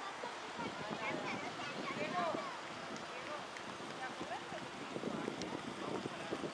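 Deer hooves clop on a paved road.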